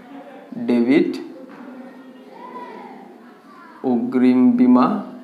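A young man speaks clearly in a lecturing tone, close by.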